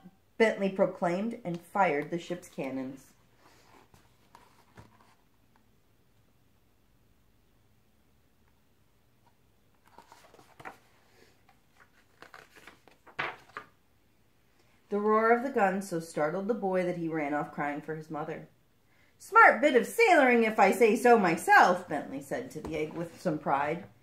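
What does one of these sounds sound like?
A young woman reads aloud calmly and close by.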